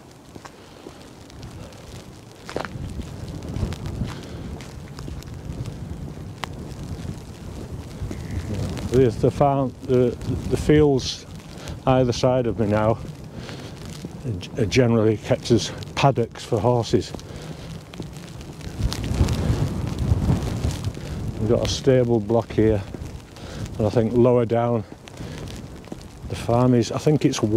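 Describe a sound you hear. Wind gusts roughly across the microphone outdoors.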